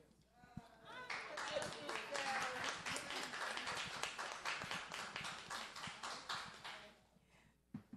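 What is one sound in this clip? A group of people applaud in a room.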